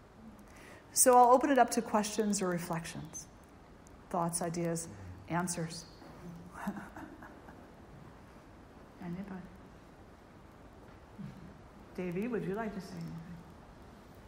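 An elderly woman speaks calmly and slowly, close to a microphone, with long pauses.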